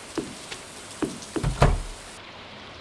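A wooden door opens and shuts with a thud.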